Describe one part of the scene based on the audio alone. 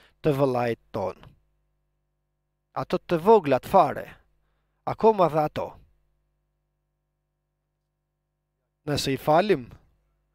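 An older man speaks with emphasis into a microphone, in short phrases with pauses.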